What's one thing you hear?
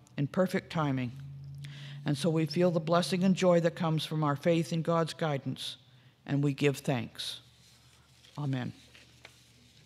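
An elderly woman speaks calmly into a microphone in an echoing room.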